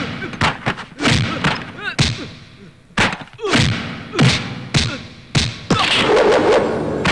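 Loud punches land with sharp smacks, again and again.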